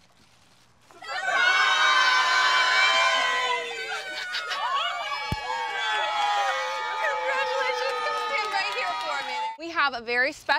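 A young boy shrieks and shouts with excitement.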